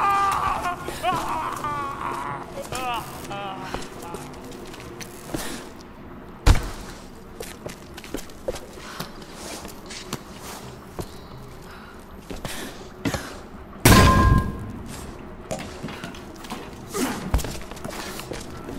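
Footsteps crunch over ground and debris.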